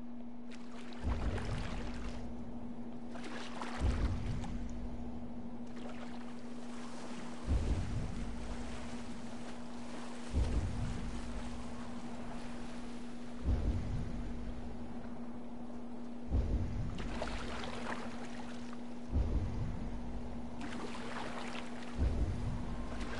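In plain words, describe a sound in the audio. Waves crash against a small boat again and again.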